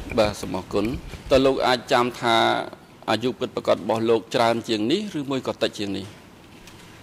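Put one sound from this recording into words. A middle-aged man speaks calmly into a microphone.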